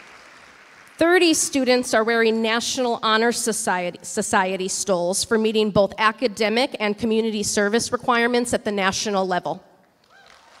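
A woman sings through a microphone in a large echoing hall.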